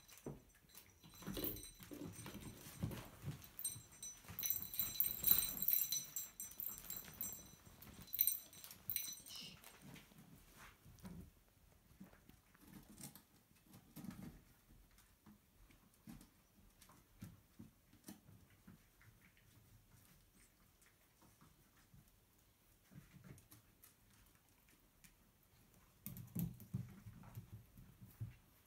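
Puppies scamper and scuffle on a hard floor.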